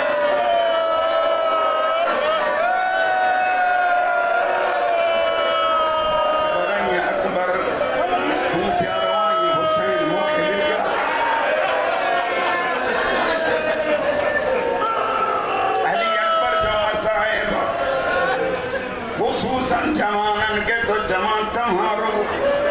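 A crowd of men chants along in unison.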